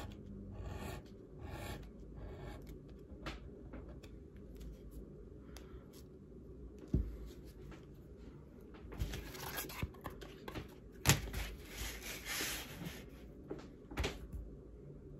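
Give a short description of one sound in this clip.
A tool creases and presses along leather with short scraping strokes.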